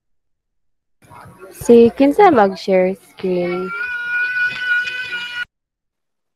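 A young woman speaks through an online call.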